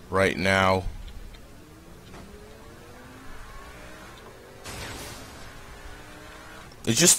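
A car engine hums and revs up as the car speeds along.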